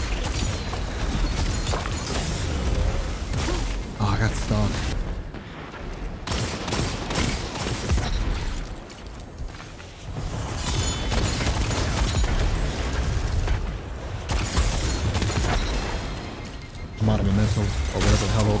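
A young man talks through a microphone with animation.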